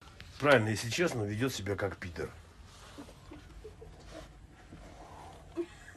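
A middle-aged man talks loudly and with animation close by.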